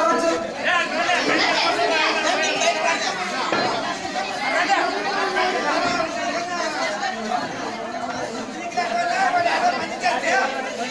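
A crowd of men and women shout and talk loudly all at once nearby.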